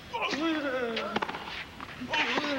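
A tennis ball is struck sharply by a racket.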